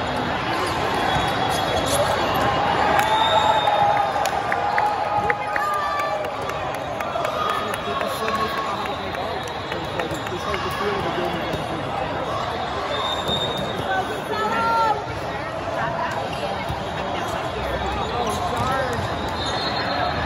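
A volleyball thuds off a player's hands and arms.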